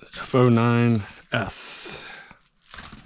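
Plastic bubble wrap crinkles as it is pulled away.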